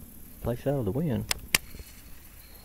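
A fishing reel clicks as a line is cast.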